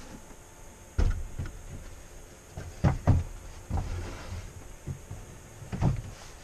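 Wood thumps and clatters close by.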